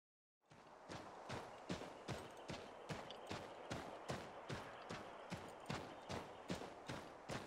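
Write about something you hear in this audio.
Hooves thud steadily as a horse trots through snow.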